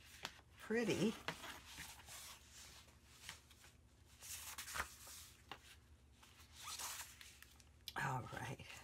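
Stiff paper sheets rustle and flap as they are handled.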